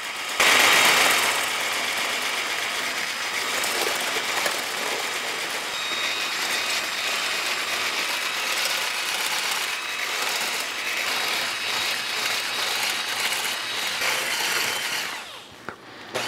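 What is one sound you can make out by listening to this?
An electric hand mixer whirs steadily, beating a thick mixture.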